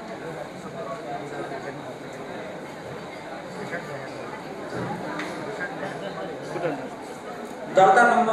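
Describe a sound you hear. A man speaks calmly through a microphone and loudspeakers.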